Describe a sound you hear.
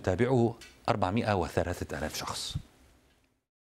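A man speaks with animation through a microphone, close by.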